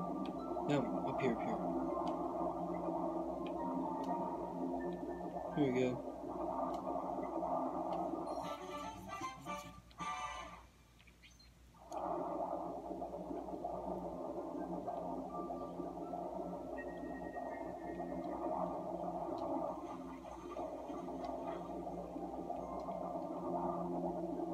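Cheerful game music plays through a television speaker.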